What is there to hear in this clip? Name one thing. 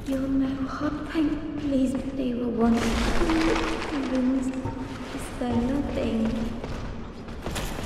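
A man speaks slowly and mournfully in a low voice.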